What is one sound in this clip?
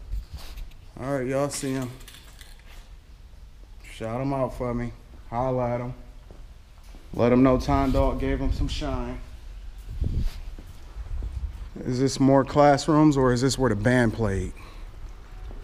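A man talks close by, calmly and in bursts.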